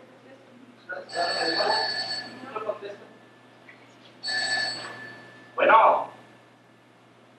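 A young woman speaks in an echoing hall.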